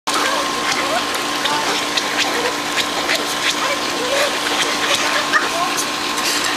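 Water splashes softly as a dog paws at a pool float.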